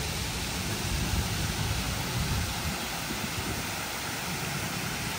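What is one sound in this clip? Water bubbles and splashes softly in a fountain.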